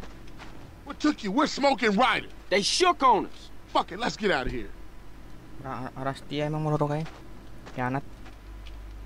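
A young man talks urgently, close by.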